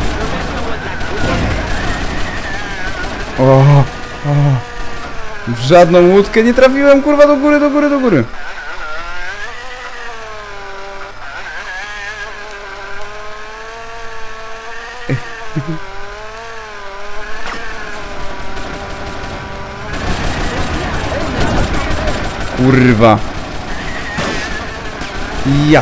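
A toy plane's engine buzzes steadily, rising and falling in pitch.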